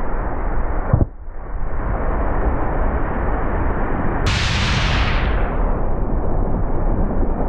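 Spray hisses and sloshes under a wakeboard carving across the water.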